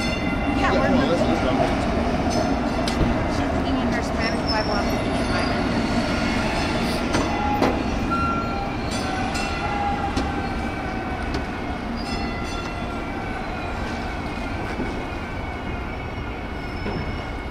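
Low wind rumble and street noise fill the background outdoors.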